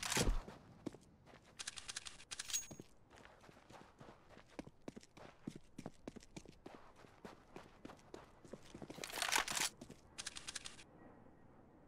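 Quick footsteps patter on hard ground.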